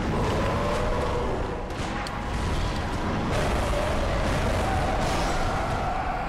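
A beast roars and growls loudly.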